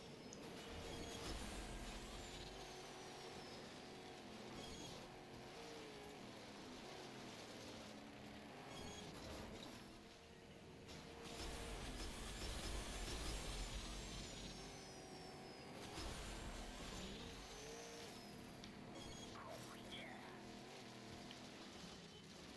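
A racing car engine roars and revs at high speed.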